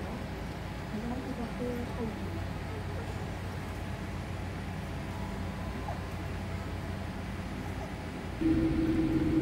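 Jet engines hum steadily, heard from inside an airliner cabin.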